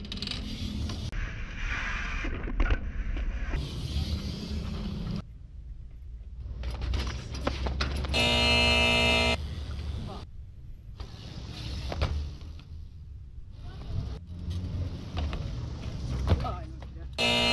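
A bike lands on concrete with a clatter.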